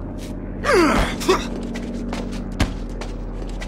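A knife stabs into flesh with a dull thud.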